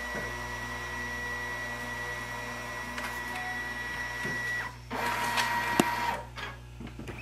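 A scanner hums and whirs steadily, then stops.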